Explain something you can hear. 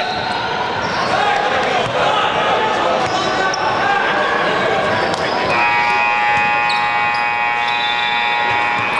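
Children call out and shout in a large echoing hall.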